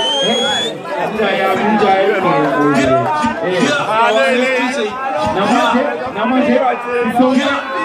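Loud music with a beat plays through loudspeakers.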